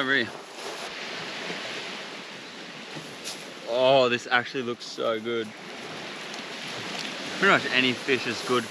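A man speaks calmly and close by, outdoors.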